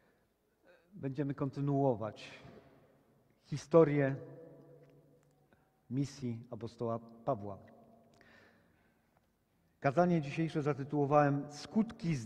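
A middle-aged man speaks calmly and expressively close by, with pauses between phrases.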